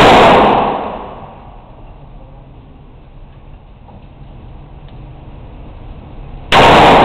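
A rifle fires loud shots that boom and echo in an enclosed space.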